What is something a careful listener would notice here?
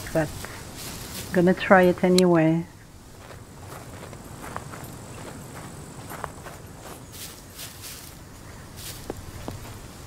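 Footsteps brush through grass and over gravel.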